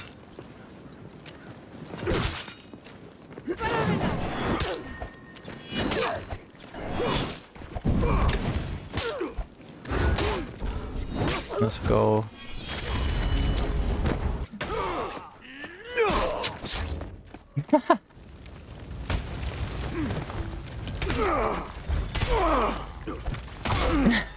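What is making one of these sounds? Swords clash and clang repeatedly.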